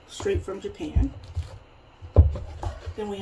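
A cardboard tube lid pops off with a hollow thud.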